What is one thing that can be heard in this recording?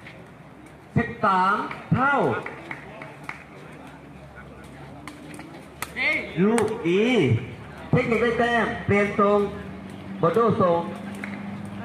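Young men shout loudly outdoors during a ball game.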